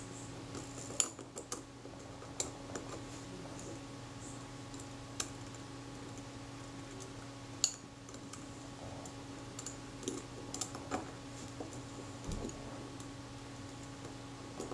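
Metal tweezers tick and click against small metal parts.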